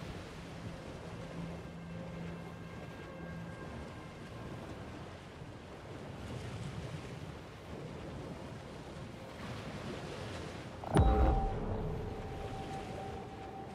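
Water splashes and churns as a shark swims through the waves.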